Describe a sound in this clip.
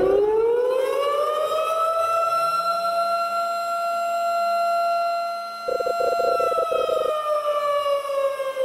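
An alarm siren wails, rising and holding, then slowly falling.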